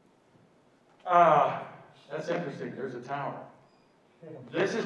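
An elderly man speaks loudly into a microphone.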